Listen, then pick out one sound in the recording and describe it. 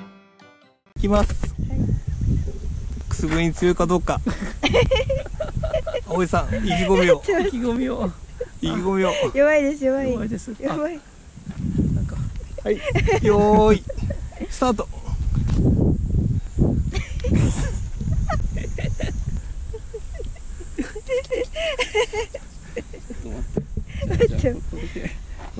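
A young woman laughs and squeals up close.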